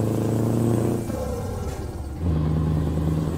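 A truck engine's rumble drops away briefly as gears shift, then returns.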